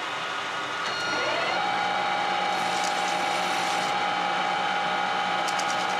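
A metal lathe starts and spins up.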